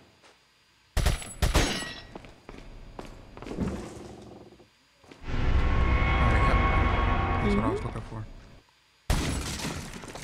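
Pistol shots fire sharply, ringing off stone walls.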